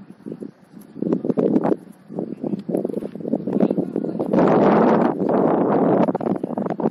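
Wind blows against the microphone outdoors.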